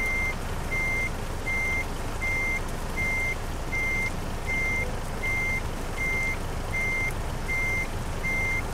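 A truck's reversing alarm beeps steadily in a regular rhythm.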